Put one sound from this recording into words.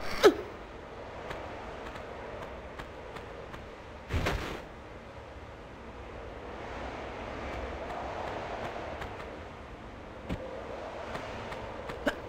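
Footsteps patter quickly on stone in an echoing cave.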